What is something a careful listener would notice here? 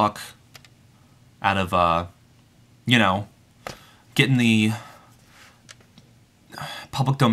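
A young man speaks calmly and close to the microphone, in short phrases with pauses.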